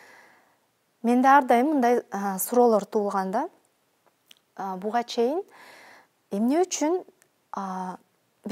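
A woman speaks calmly and closely into a microphone.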